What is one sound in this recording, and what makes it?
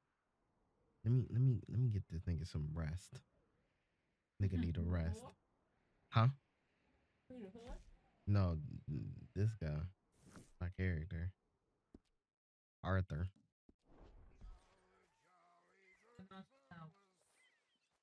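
A young man talks casually into a microphone.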